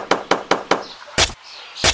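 A small metal tool taps on a wooden stick in quick, light knocks.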